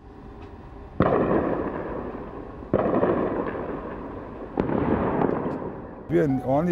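Distant explosions boom one after another, each rumbling away slowly.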